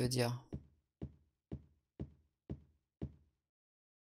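Footsteps tap on a wooden floor at an even pace.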